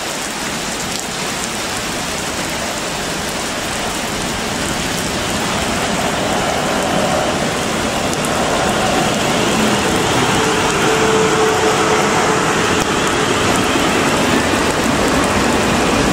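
Steady rain falls and patters outdoors.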